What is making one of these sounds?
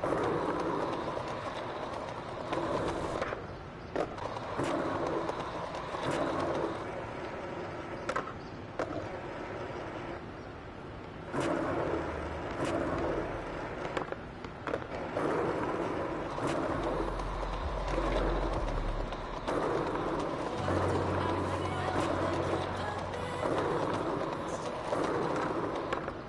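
Skateboard wheels roll and rumble over paving stones.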